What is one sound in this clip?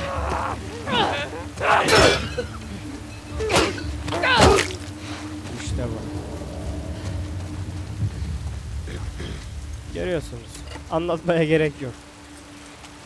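A monster snarls and shrieks up close.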